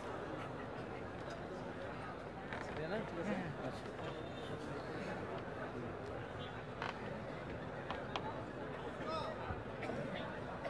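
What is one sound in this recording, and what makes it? A crowd of men murmurs and talks in the background.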